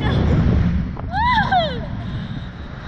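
A young child screams in a high voice.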